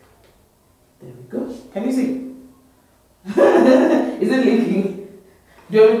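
A young woman laughs and talks with animation close by.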